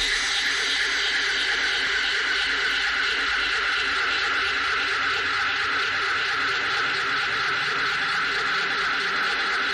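A jet of gas hisses loudly.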